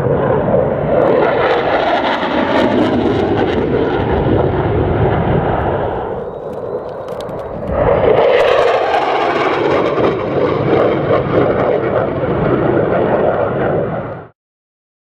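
A single-engine jet fighter roars overhead.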